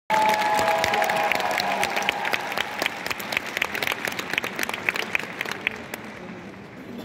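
A large crowd applauds and cheers in a big echoing arena.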